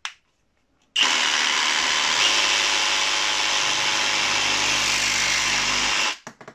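A reciprocating saw buzzes loudly as it cuts through a plastic pipe.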